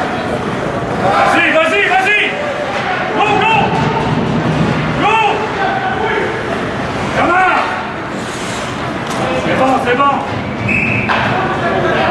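Young men shout across a large echoing rink.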